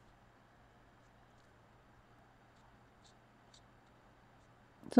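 A marker tip taps and scratches softly on glass.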